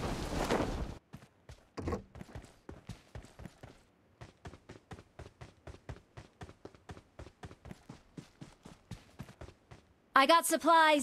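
Footsteps thud quickly and evenly on the ground.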